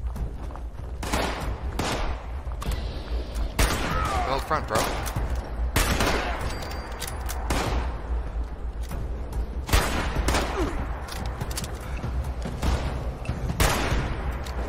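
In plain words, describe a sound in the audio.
A shotgun fires loud booming shots, one after another.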